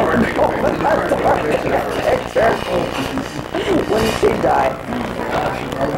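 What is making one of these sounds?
A middle-aged man laughs heartily.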